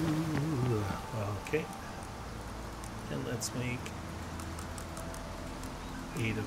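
Coals crackle softly in a forge fire.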